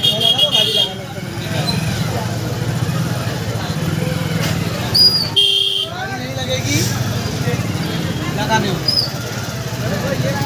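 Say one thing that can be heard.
Men talk nearby in a crowd outdoors.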